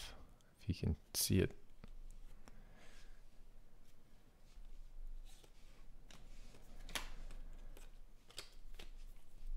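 Trading cards slide and click softly as they are flipped by hand.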